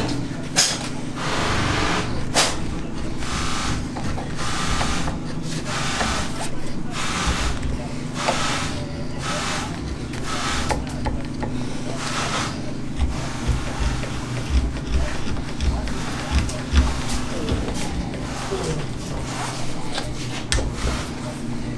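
A carving knife scrapes and shaves wood in short, repeated strokes.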